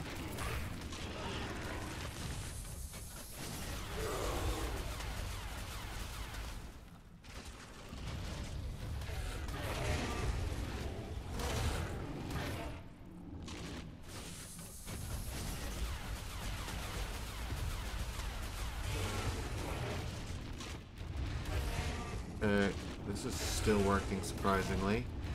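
A large beast bites with heavy, repeated thuds.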